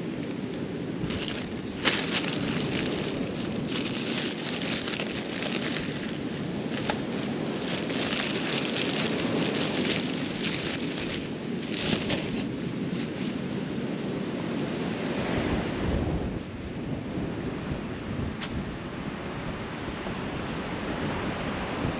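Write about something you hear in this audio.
Wind gusts, buffeting the microphone.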